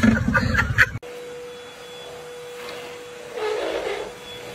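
A vacuum cleaner hums steadily.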